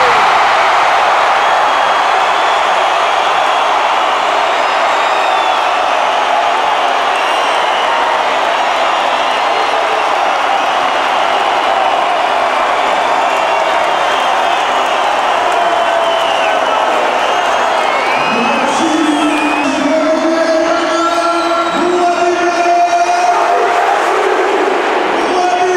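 A large crowd roars and cheers in a big echoing stadium.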